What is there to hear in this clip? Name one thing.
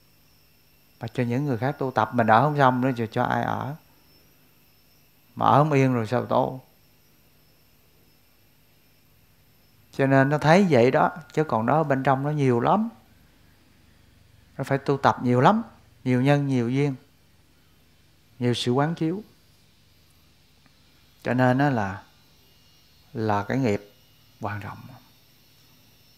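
A middle-aged man speaks calmly into a close microphone, with long pauses.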